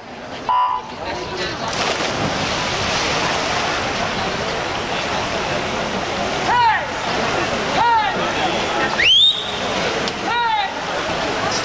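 Swimmers dive in and splash loudly through the water.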